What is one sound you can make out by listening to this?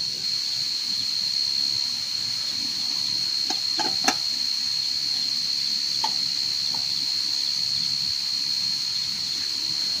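A small wood fire crackles softly.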